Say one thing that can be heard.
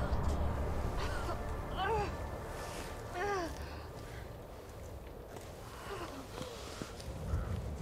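A woman groans and gasps in pain.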